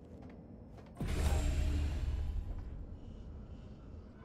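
A heavy door slides open with a loud whoosh.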